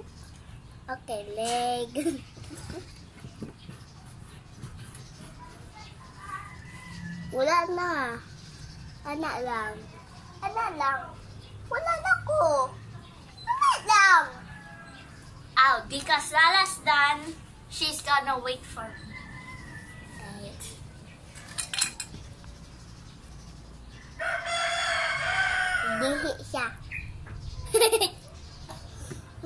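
A young girl talks and giggles close by.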